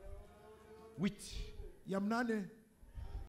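A man exclaims loudly through a microphone.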